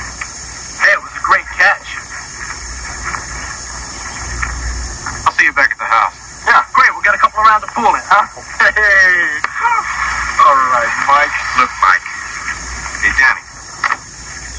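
A young man talks with animation, heard through a television speaker.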